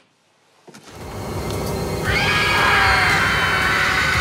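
Several people scream together loudly.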